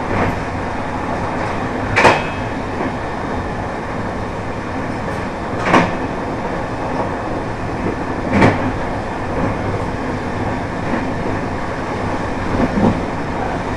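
A train rumbles steadily along the rails from inside the cab.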